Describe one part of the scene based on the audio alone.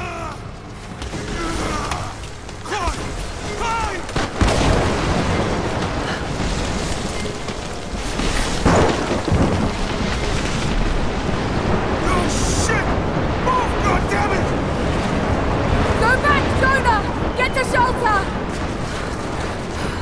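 Strong wind howls steadily.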